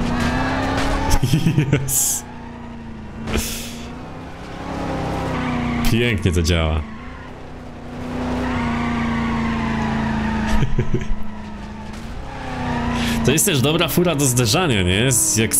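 Tyres screech while skidding.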